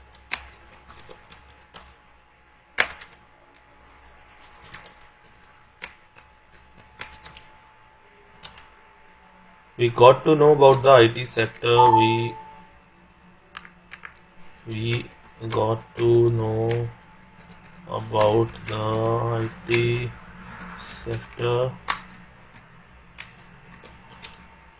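Keys click on a computer keyboard as someone types.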